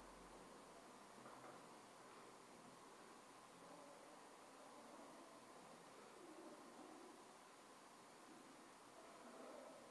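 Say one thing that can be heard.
A hand presses and pats a soft bread dough.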